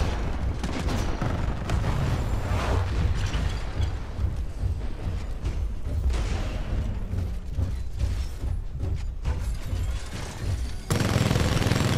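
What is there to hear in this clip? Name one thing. Heavy mechanical footsteps thud and clank steadily.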